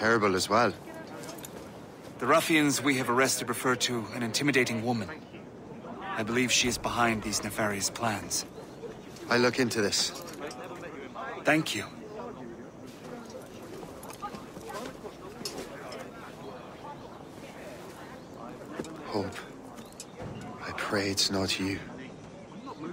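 A younger man answers in a low, firm voice.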